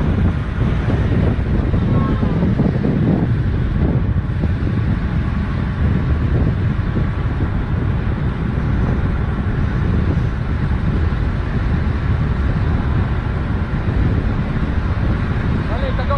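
Bicycle tyres hum on smooth asphalt.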